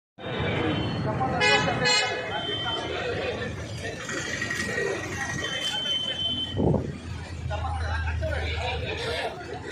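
A man shouts slogans, leading the crowd.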